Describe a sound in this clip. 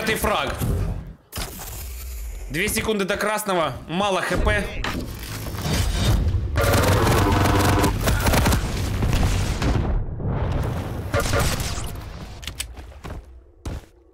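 Game guns fire with sharp zaps and blasts.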